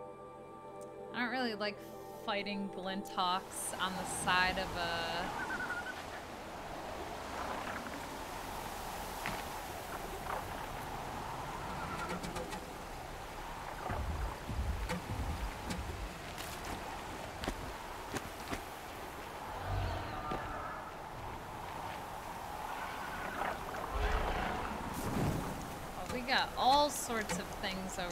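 A young woman talks casually and close into a microphone.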